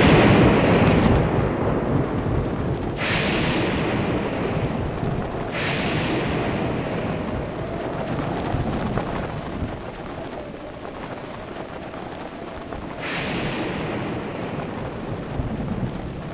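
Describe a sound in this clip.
Wind rushes past in strong gusts.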